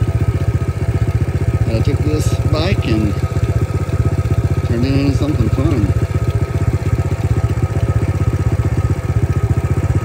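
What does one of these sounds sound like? The small single-cylinder four-stroke engine of a Honda CT70 mini trail bike chugs as the bike cruises along.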